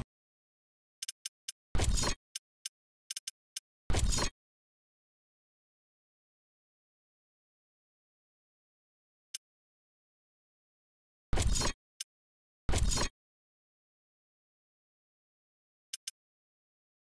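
Short electronic menu chimes and whooshes sound.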